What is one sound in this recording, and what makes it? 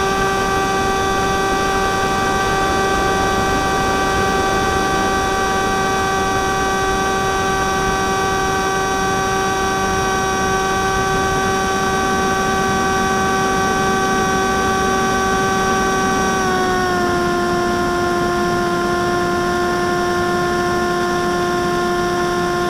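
An electric model airplane motor whines with its propeller in flight, then drops slightly in pitch.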